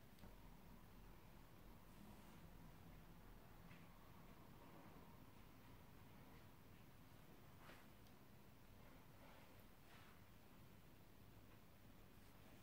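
A makeup brush brushes softly against skin.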